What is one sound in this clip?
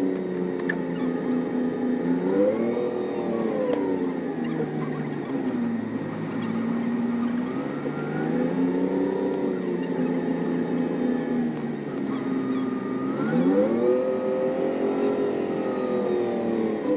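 A bus engine hums and rises and falls in pitch as the bus creeps through traffic.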